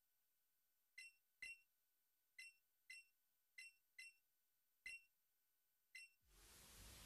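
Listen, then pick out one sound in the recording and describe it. Short electronic blips chirp one after another.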